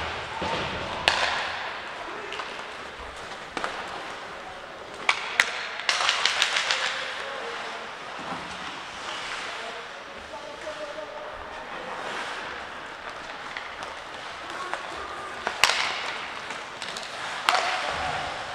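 Hockey sticks clack sharply against a puck.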